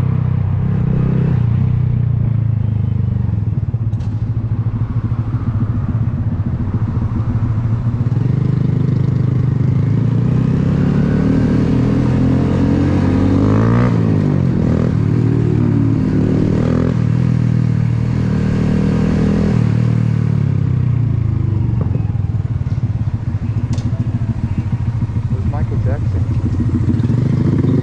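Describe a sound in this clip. A motorcycle engine hums close by and rises and falls in pitch as it speeds up and slows down.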